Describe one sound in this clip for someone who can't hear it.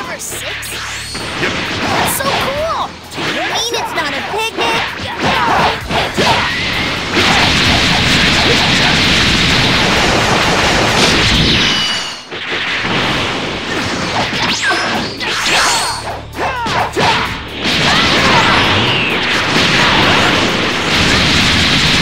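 Punches and kicks land with sharp thuds in a fast fight.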